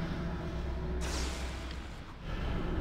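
An electric spell crackles and zaps.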